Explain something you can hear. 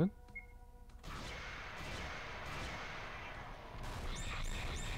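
Weapons strike and clash in quick bursts of battle effects.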